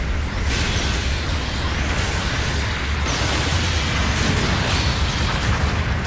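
A beam weapon fires with a loud, sizzling roar.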